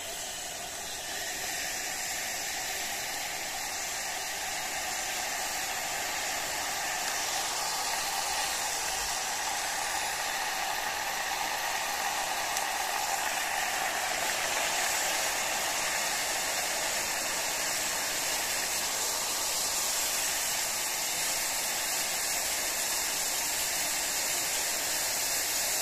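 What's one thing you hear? Water pours steadily from a kettle into a glass with a hissing splash.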